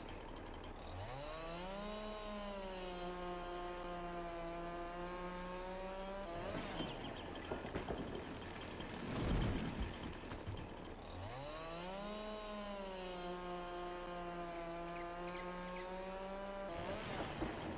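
A chainsaw engine revs up, runs at a steady high whine and then cuts out.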